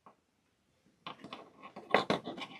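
Small tools click and tap against beads.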